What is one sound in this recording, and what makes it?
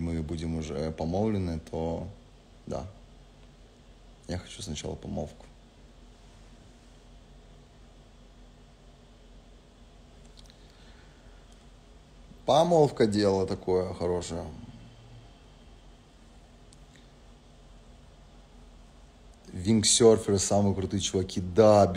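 A young man talks casually into a nearby microphone, pausing often.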